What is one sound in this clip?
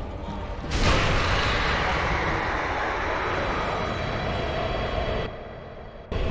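A giant creature lets out a loud, long dying roar.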